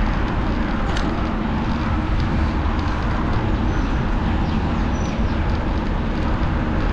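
Wind rumbles loudly past a moving bicycle.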